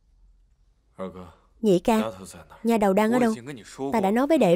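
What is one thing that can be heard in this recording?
A young man speaks loudly and firmly, close by.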